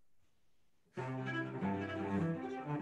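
A cello plays a bowed melody.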